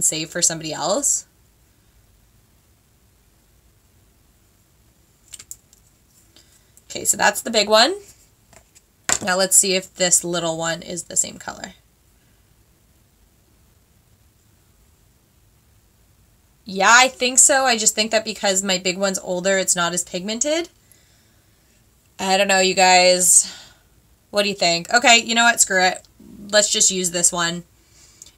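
A young woman talks close to a microphone, calmly and in bursts with pauses.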